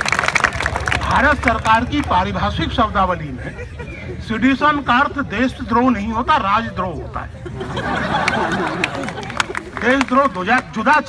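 An elderly man speaks loudly into a microphone over a loudspeaker.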